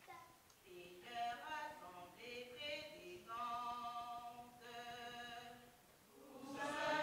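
A man calls out commands through a microphone in a large echoing hall.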